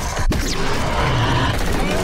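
A creature roars loudly.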